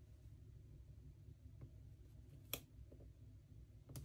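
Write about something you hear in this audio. Fingers tap and press on paper.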